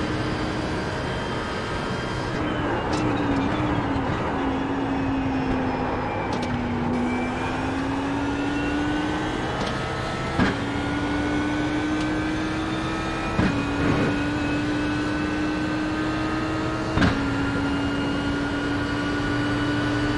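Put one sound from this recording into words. A racing car engine roars steadily, dropping in pitch as it slows and rising as it speeds up.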